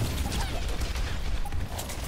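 A flamethrower roars.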